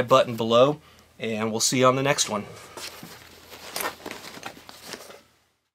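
Plastic packets crinkle and rustle under handling fingers.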